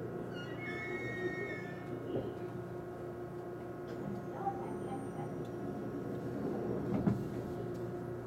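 A stopped train hums steadily and quietly.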